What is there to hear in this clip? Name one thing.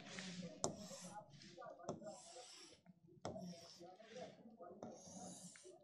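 A marker squeaks and scratches on a board.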